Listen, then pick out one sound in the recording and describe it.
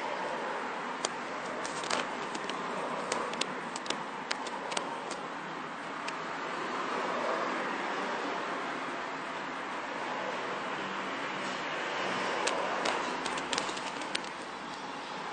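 A man makes clicking and hissing mouth sounds in a rhythm, like drums.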